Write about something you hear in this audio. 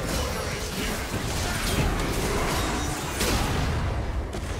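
Magic spell effects whoosh and burst in quick succession.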